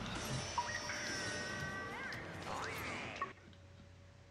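Game sound effects and music play, then cut off abruptly.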